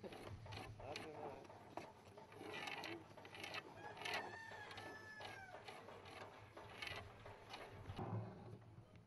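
A chisel cuts into a wooden beam.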